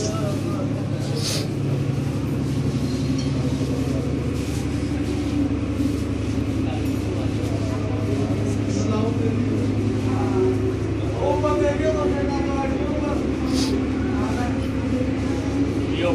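A crowd of people murmurs in the background.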